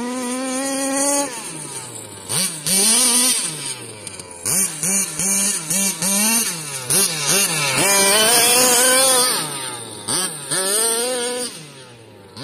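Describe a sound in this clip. A small electric motor whines close by, rising and falling in pitch over and over.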